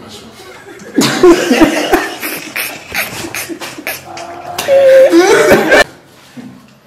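A woman laughs loudly and heartily.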